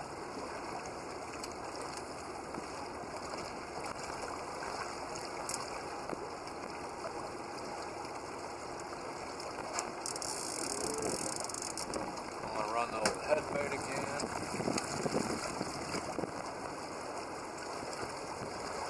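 Wind blows steadily outdoors over open water.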